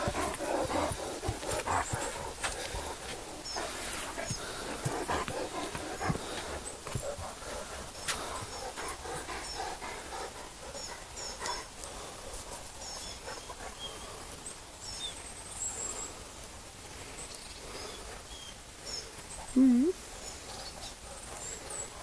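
Paws scuff and rustle on dry ground close by.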